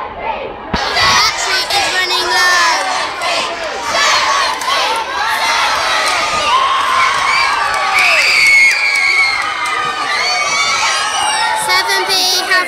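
A crowd of children cheers and screams outdoors.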